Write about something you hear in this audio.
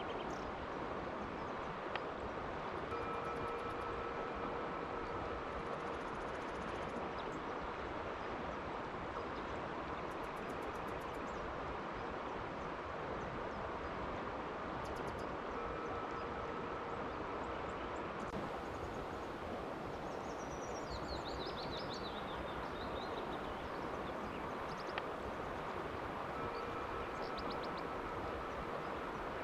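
A river flows steadily over stones, rippling and rushing outdoors.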